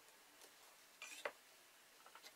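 A metal ruler is set down on a board with a clack.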